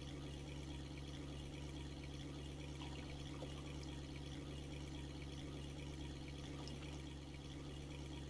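A boat's outboard motor hums steadily.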